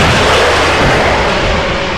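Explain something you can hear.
A helicopter's rotor roars and thuds overhead.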